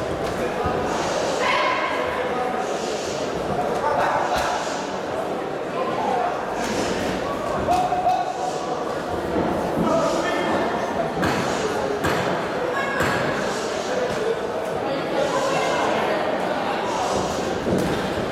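Gloved punches thud against bodies.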